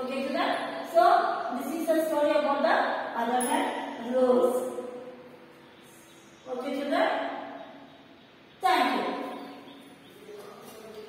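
A woman speaks clearly and slowly, as if teaching, in a room with some echo.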